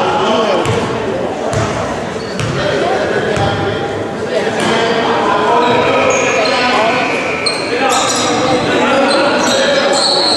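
Young men shout and call out across the gym.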